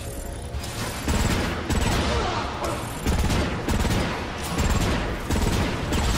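Rapid gunfire bursts out in loud volleys.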